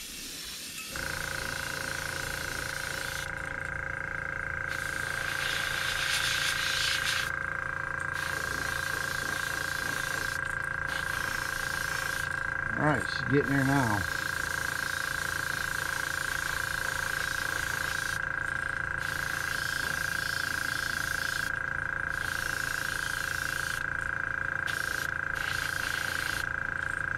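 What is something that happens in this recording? A spray booth fan hums steadily.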